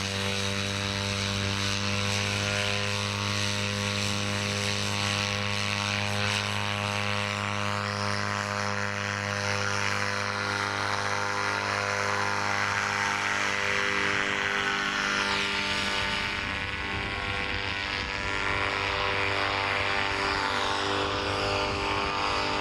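A paramotor engine drones steadily nearby, then grows fainter as it moves away.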